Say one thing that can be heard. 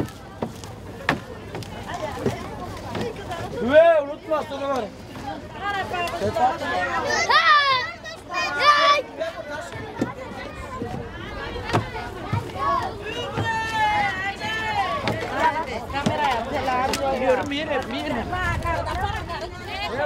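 Women and children chatter and call out close by.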